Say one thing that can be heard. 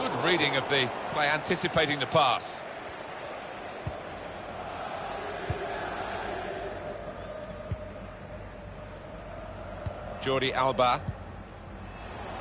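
A stadium crowd murmurs and cheers steadily in the background.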